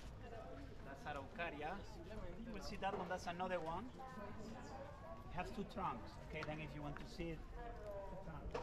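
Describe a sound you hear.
Several men and women chat casually nearby outdoors.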